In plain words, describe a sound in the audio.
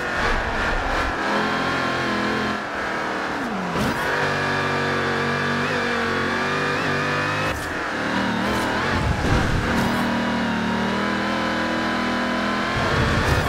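A car engine roars steadily, its pitch rising and falling as the gears shift.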